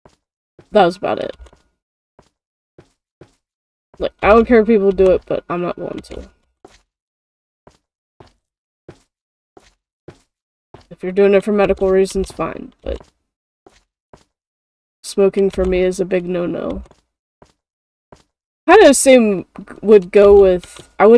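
A young woman talks casually into a close microphone, in short bursts with pauses.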